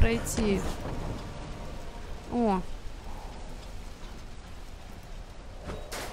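A young woman speaks briefly and calmly into a close microphone.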